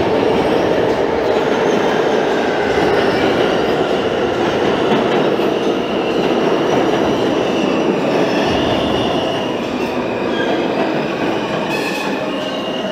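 Train wheels squeal on the rails.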